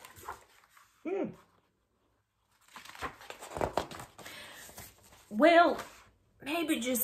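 A woman reads aloud expressively, close by.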